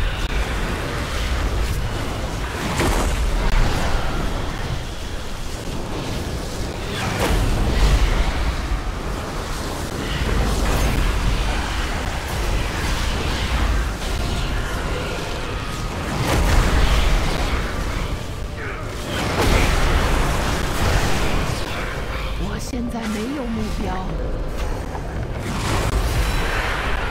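Magic spell effects whoosh and crackle in a fantasy video game battle.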